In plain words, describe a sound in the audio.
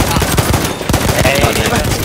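A rifle fires in quick shots.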